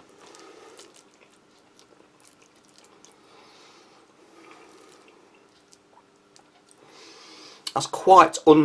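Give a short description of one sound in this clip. A plastic spoon scrapes and stirs food on a metal tray.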